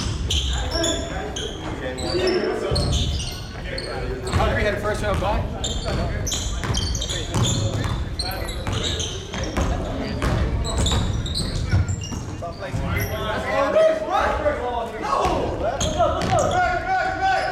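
A basketball bounces on a hard floor, echoing.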